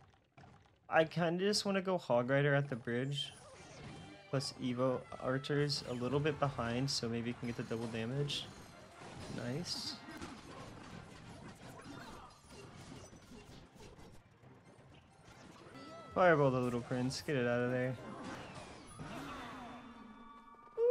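Short game sound effects pop and crash.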